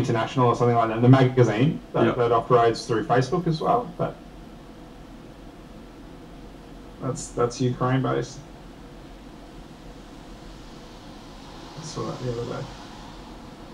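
A man talks calmly into a microphone in short bursts.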